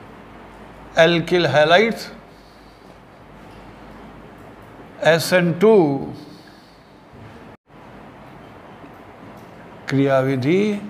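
An elderly man speaks in short bursts, explaining calmly and clearly.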